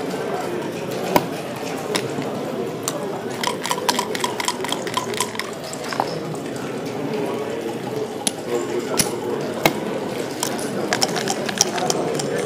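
A chess clock button is pressed with a sharp click.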